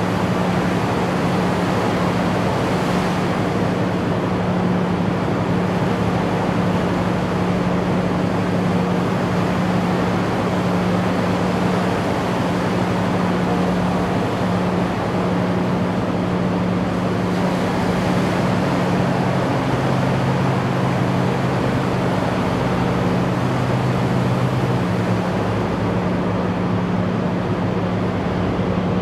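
A diesel amphibious assault vehicle drones as it motors through the water.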